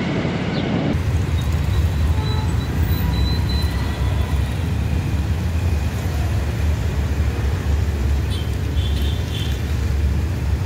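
A bus engine rumbles deeply as the bus drives over a bridge.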